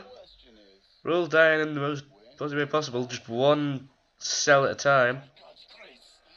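An older man answers calmly and pleadingly, close by.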